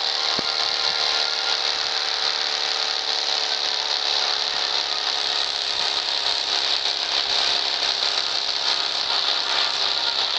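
A buggy engine hums steadily.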